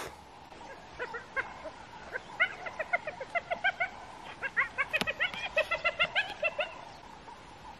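Birds chatter and chirp rapidly nearby.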